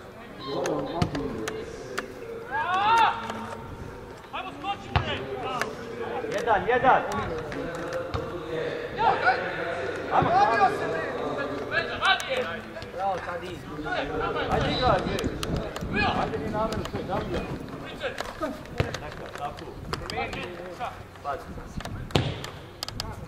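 A football is kicked with sharp thuds now and then.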